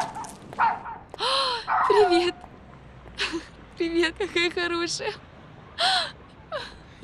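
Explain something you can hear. A young woman speaks in a high, coaxing voice to a dog.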